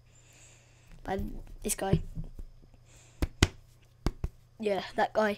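A boy speaks softly and closely into a microphone.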